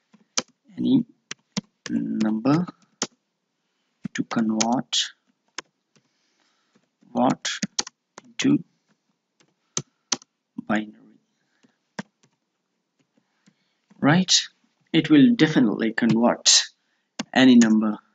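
Keyboard keys click as someone types.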